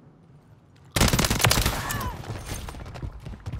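Rapid gunfire rattles loudly and close by.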